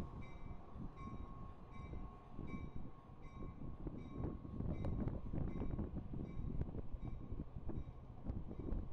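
A train rumbles and creaks slowly past, close by.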